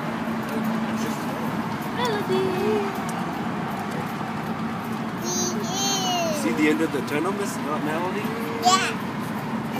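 A little girl sings softly up close.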